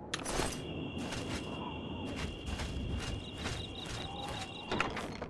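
Footsteps tread on rough ground at a steady pace.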